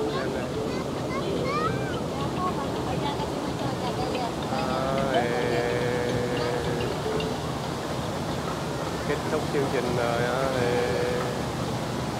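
Young people chatter and call out nearby.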